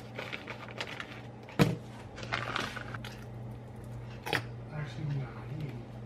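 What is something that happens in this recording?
Sauce squirts from a squeeze bottle.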